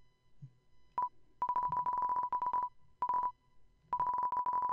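A video game's dialogue text blips out in rapid, high beeps.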